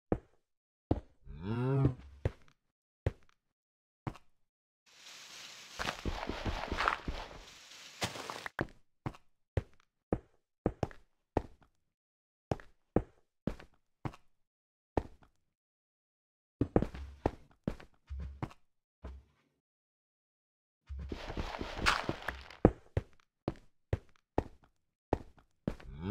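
Stone blocks knock sharply as they are placed, one after another.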